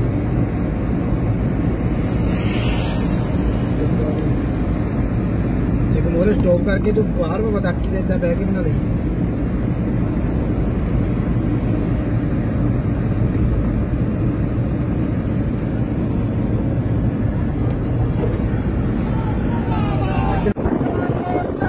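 A car engine hums and tyres roll steadily on a highway.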